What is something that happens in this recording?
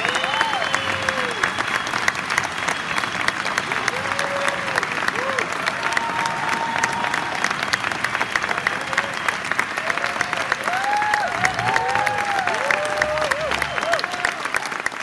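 People in an audience cheer and whistle.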